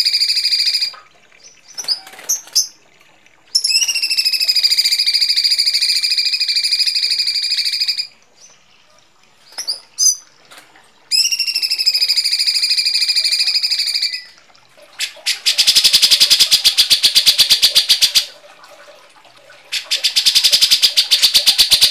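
Birds sing loud, harsh, buzzing calls in repeated bursts.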